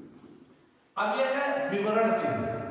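A man speaks loudly and clearly nearby.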